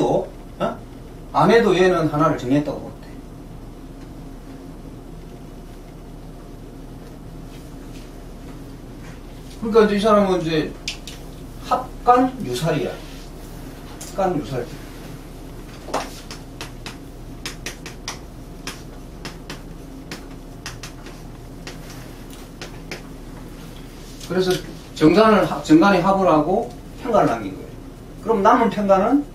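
An older man speaks calmly and close by, in short bursts with pauses.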